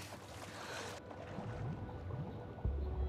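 Muffled bubbling as a person dives underwater.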